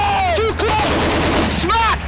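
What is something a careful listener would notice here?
A machine gun fires in rapid bursts close by.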